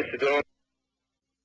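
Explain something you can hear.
A man speaks briefly into a microphone in a calm, presenting voice.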